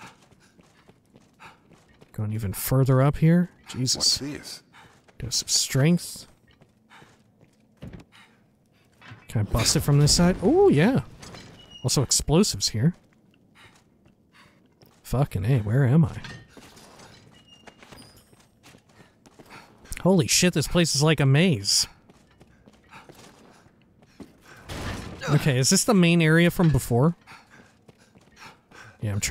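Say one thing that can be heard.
Footsteps tread on a stone floor.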